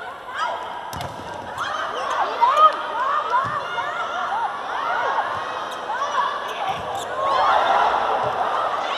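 A volleyball is struck and thuds during a rally.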